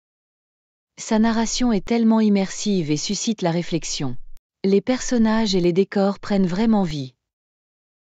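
A young woman speaks with animation, heard clearly as if close to a microphone.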